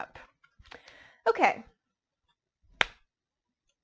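A card is laid softly on a cloth-covered table.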